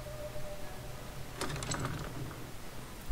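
A door handle clicks and a wooden door swings open.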